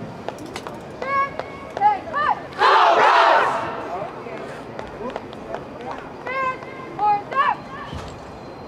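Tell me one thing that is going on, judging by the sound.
People in a crowd shout out calls.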